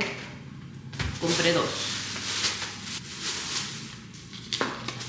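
A paper bag rustles.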